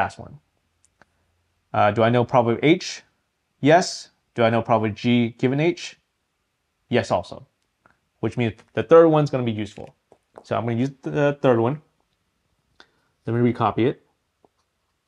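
A man explains calmly, heard close through a microphone.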